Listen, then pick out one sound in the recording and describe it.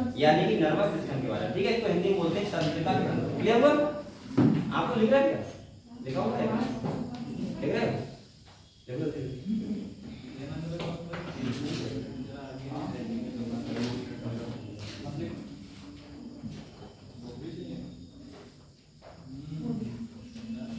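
A young man lectures with animation, close by.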